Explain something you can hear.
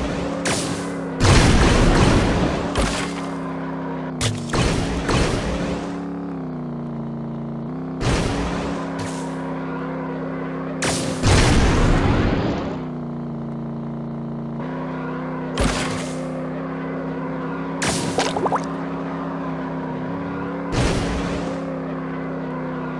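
A kart engine hums steadily.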